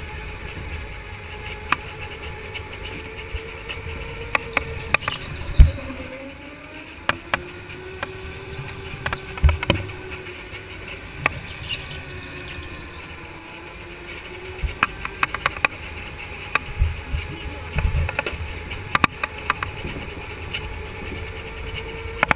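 A go-kart engine whines steadily, rising and falling in pitch as the kart speeds up and slows down.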